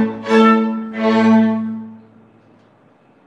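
A string quartet plays loud held chords that break off and ring out briefly.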